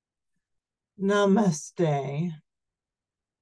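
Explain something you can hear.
A middle-aged woman speaks briefly and calmly over an online call.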